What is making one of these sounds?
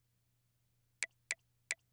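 Game menu clicks sound in quick succession.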